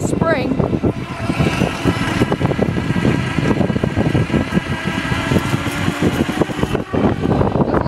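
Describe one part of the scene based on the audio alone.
An electric motor whines steadily.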